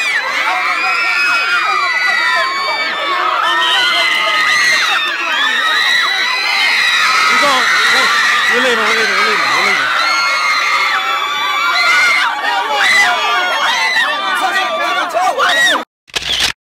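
A large crowd screams and cheers loudly in a big echoing arena.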